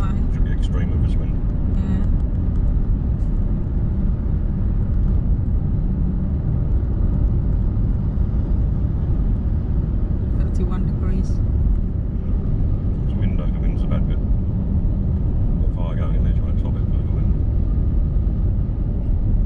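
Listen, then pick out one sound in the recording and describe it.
Tyres roll over the road with a steady low rumble.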